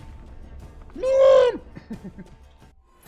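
A young man cries out in dismay close to a microphone.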